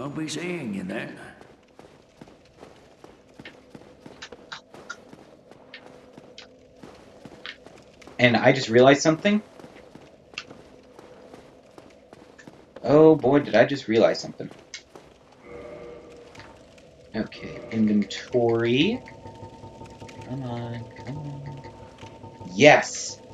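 A young man talks with animation into a headset microphone, in short bursts.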